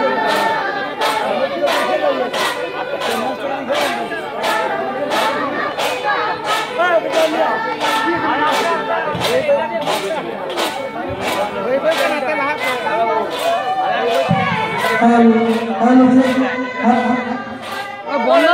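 A group of women sing together outdoors.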